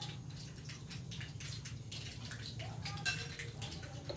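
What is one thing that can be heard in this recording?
Liquid pours from a bottle into a bowl.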